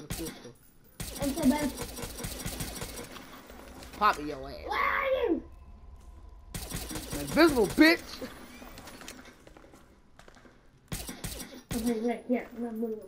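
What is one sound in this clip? A pistol fires rapid shots in bursts.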